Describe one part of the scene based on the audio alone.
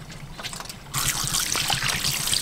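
Water from a hose splashes onto a fish.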